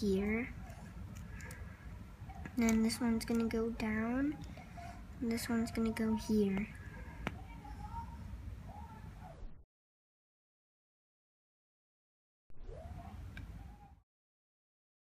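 Plastic puzzle segments click as they are twisted.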